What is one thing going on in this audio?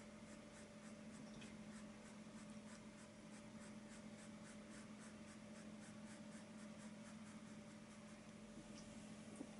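A paintbrush dabs and swishes softly on canvas.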